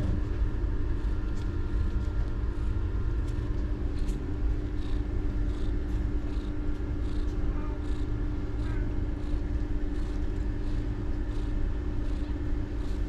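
Newborn kittens suckle with soft, wet smacking sounds.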